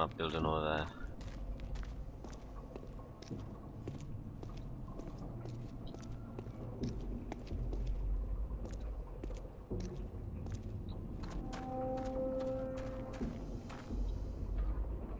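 Footsteps thud steadily across grass.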